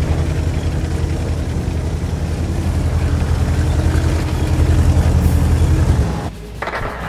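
A heavy tank engine rumbles steadily and deep.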